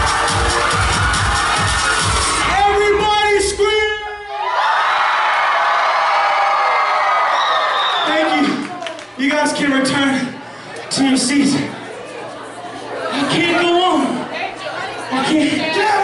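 A crowd of teenagers cheers and chatters loudly.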